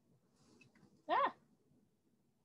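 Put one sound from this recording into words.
A woman laughs briefly over an online call.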